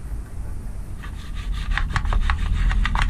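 A small brush scrubs quickly against a hard surface.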